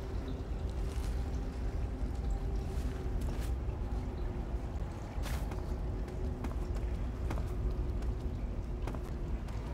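Footsteps shuffle softly across a hard floor.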